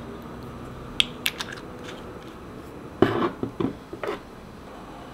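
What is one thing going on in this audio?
Oil pours from a bottle into a glass bowl.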